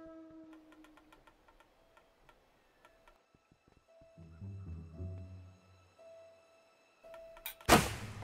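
A bowstring creaks as it is pulled taut.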